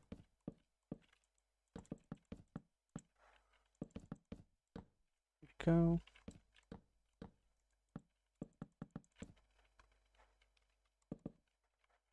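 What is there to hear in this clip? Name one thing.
Wooden blocks are placed and broken with quick, dull knocks.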